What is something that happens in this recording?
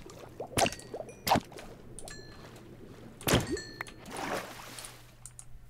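Blocks crack and crumble as they are broken.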